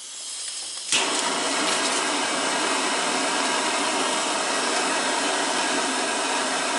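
A gas torch hisses and roars steadily.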